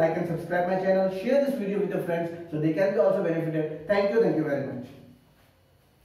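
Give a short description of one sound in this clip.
A young man lectures with animation, close by.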